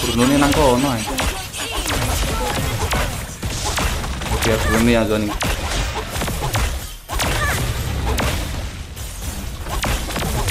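Video game fighting effects clash and blast repeatedly.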